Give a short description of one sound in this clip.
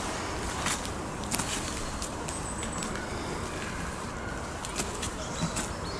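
A metal stake scrapes and taps on the ground.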